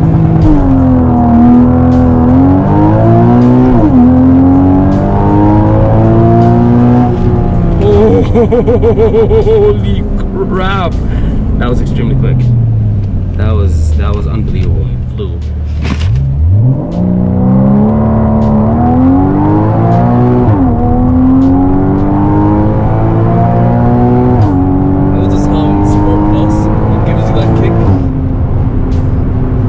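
A sports car engine roars loudly, revving up through the gears and dropping in pitch at each shift.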